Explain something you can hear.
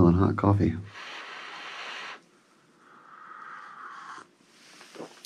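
A man sips and slurps a hot drink.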